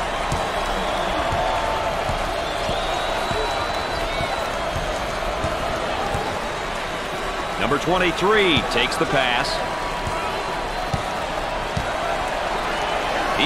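A large crowd murmurs and cheers steadily in an echoing arena.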